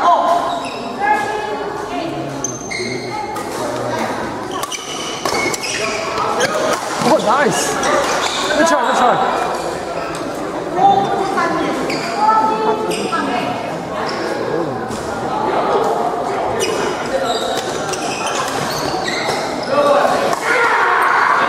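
Men and women chatter in a large echoing hall.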